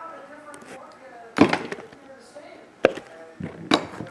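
A die rolls and clatters on a tabletop.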